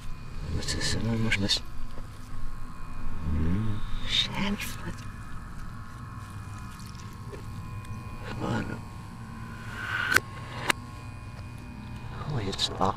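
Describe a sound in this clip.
A man speaks quietly and intently, close by.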